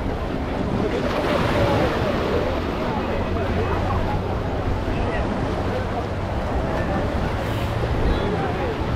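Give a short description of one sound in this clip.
Small waves wash over the shore around wading feet.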